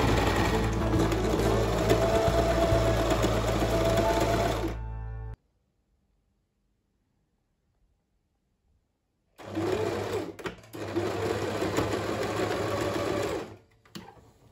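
A sewing machine hums and whirs steadily as it stitches.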